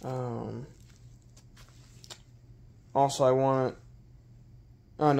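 Nylon straps and fabric rustle softly as they are handled.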